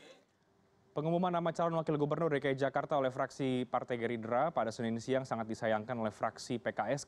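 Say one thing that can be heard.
A man speaks clearly and steadily into a microphone, like a news presenter.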